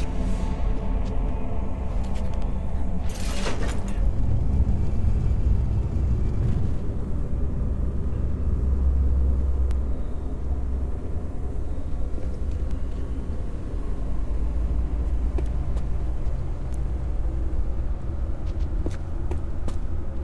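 A deep, steady rumbling drone fills an echoing cavern.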